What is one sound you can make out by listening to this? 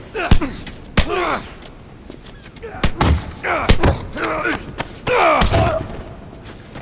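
Punches thud hard against a body in a brawl.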